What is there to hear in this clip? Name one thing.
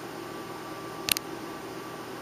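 A brush clinks once against the rim of a small glass bottle.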